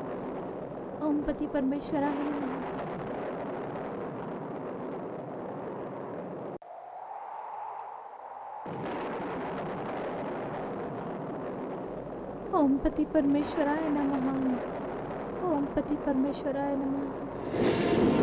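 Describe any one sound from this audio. A young woman sings in a pained, wailing voice.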